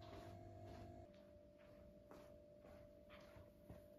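Footsteps pad across the floor.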